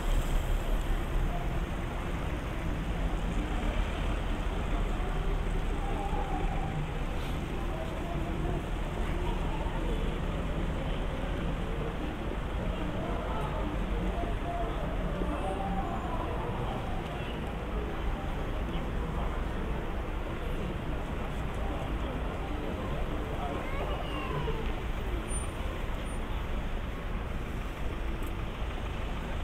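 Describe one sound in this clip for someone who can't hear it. Traffic hums steadily outdoors in a city street.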